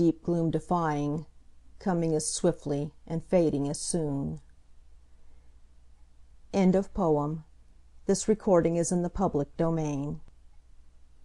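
A woman reads aloud calmly and close to a microphone.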